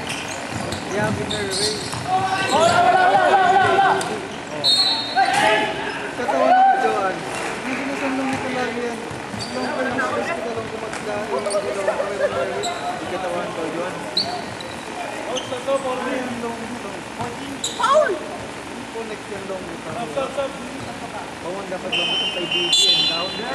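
Young men shout and call out to each other in a large echoing gym.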